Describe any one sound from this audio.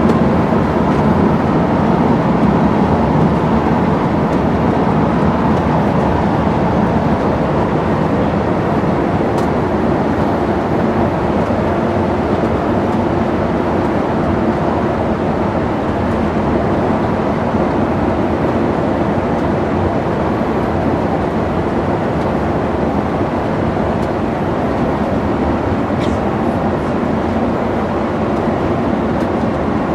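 Tyres roar steadily on asphalt.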